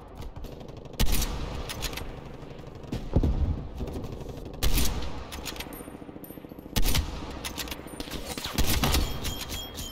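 Sniper rifle shots crack sharply, one every couple of seconds.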